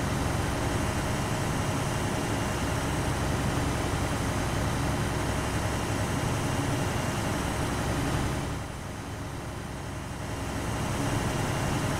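An armoured vehicle's engine rumbles steadily as it drives along.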